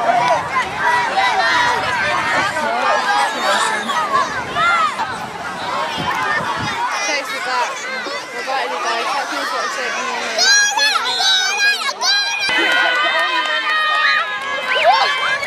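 A crowd of children and adults cheers and shouts outdoors.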